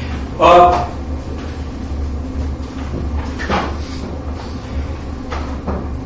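A man lectures loudly and with animation.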